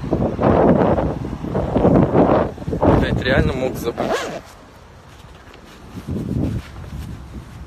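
A young man talks with animation close to a phone microphone, outdoors.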